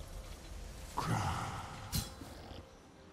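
Sharp video game sound effects of a fight ring out.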